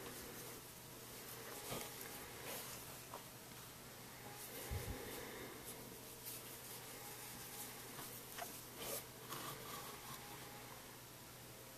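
A crochet hook and yarn rustle softly with small clicks.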